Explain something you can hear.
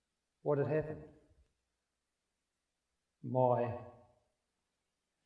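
A middle-aged man speaks with animation through a microphone in short phrases.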